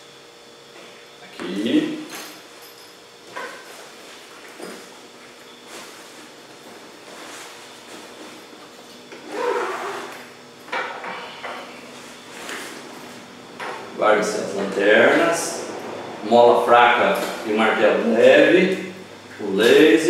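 A bag's fabric rustles as a man handles it.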